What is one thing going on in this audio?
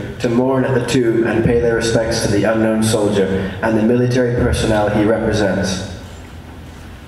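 Young voices sing loudly through loudspeakers in a large echoing hall.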